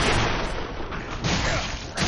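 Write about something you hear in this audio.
Metal blades clash.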